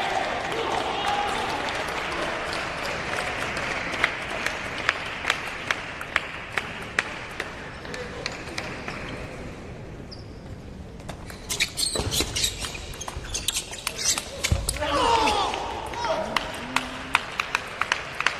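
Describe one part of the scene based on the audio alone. A murmur of voices echoes through a large hall.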